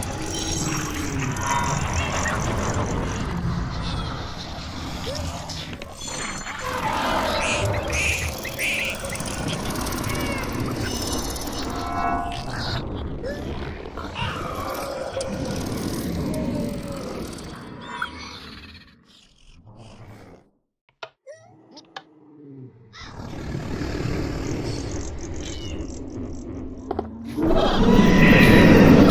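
A crowd of monsters growls, roars and screeches all at once.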